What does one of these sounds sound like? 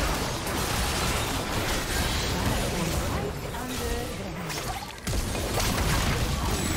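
Magic spells burst and crackle in a busy fight.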